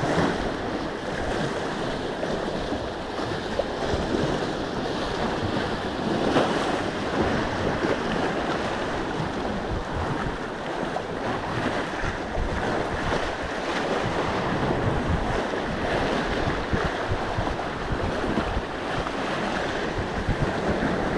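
Waves wash and splash against rocks close by.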